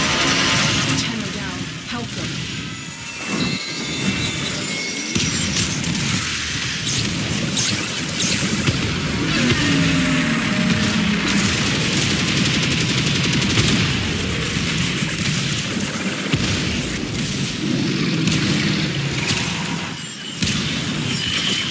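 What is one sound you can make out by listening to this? Game weapons fire and energy blasts crackle and whoosh.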